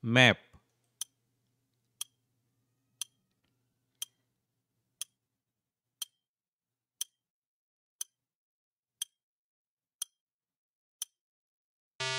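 A clock ticks once a second.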